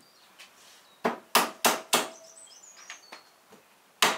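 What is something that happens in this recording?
A hammer cracks walnut shells with sharp knocks.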